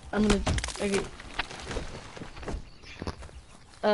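A tree cracks and crashes to the ground.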